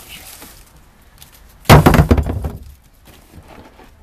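Paper and plastic wrappers rustle in a bucket.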